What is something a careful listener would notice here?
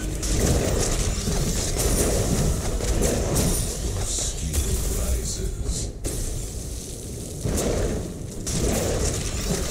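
Fiery explosions roar and crackle.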